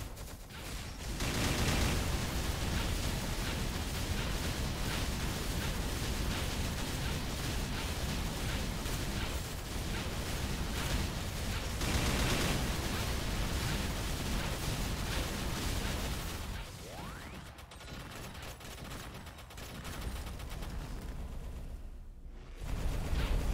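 Game spell effects blast and crackle rapidly.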